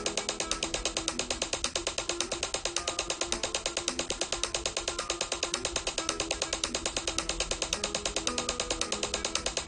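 A flamenco guitar is fingerpicked in a rapid tremolo pattern.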